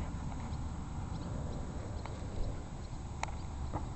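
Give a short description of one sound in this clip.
A dog sniffs at the grass close by.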